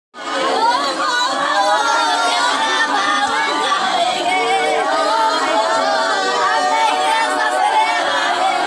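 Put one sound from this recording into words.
Several women wail and cry loudly in grief, close by.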